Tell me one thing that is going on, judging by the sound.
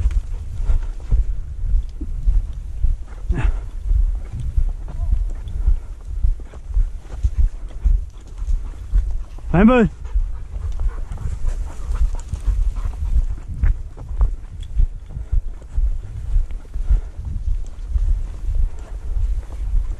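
Footsteps swish and crunch through dry grass.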